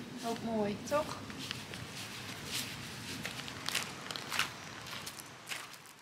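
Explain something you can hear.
Footsteps crunch on gravel and paving.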